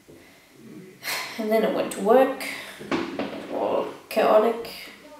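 A young woman speaks casually close by.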